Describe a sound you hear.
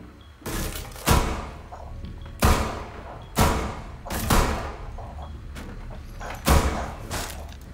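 Gunshots fire in loud single bursts.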